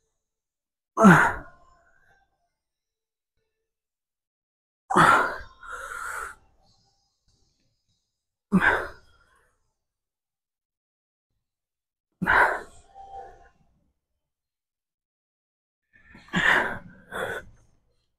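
A young man grunts and exhales sharply with effort, close by.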